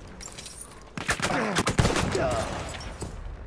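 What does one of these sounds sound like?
Gunshots crack close by.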